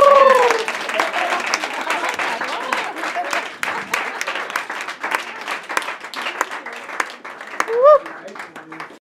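A crowd applauds with steady clapping.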